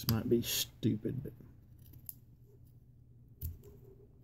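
Scissors snip through thick cloth.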